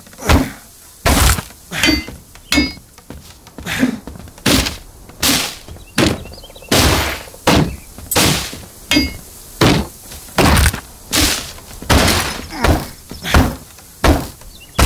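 Heavy blows thud and crack against wood over and over.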